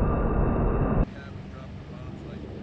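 A jet engine hums, muffled, from inside a cockpit.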